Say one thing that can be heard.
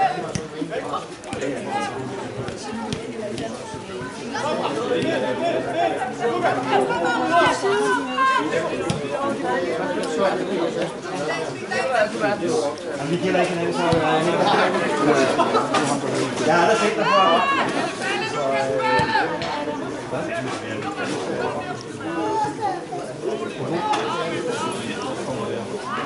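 Young men shout to each other outdoors on an open field.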